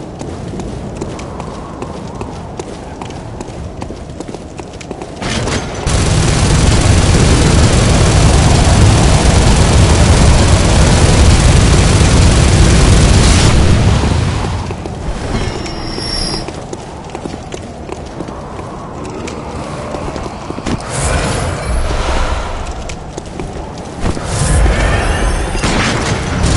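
Footsteps thud on stone stairs.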